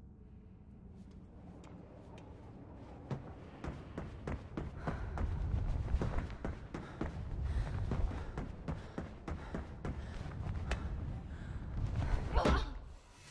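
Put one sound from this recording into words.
Footsteps clang on a metal walkway at a steady walking pace.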